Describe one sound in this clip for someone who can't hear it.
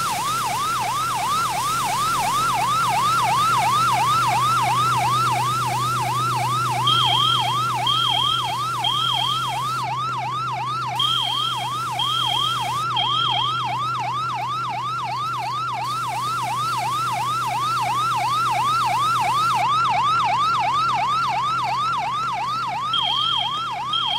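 A siren wails in a fast, steady rising and falling yelp.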